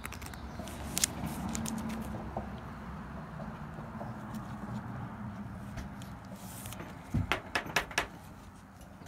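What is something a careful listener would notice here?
A hard plastic case clicks and taps.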